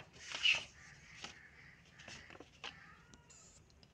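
Stiff paper rustles as a card flap is folded open.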